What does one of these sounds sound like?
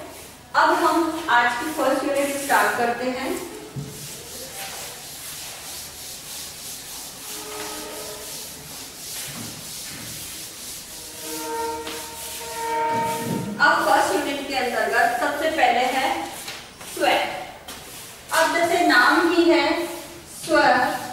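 A woman speaks calmly and clearly, as if teaching.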